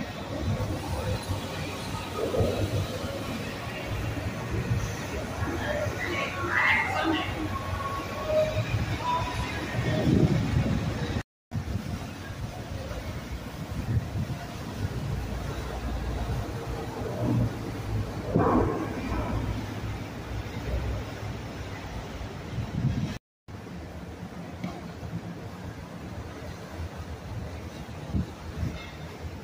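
Water churns and splashes against boat hulls.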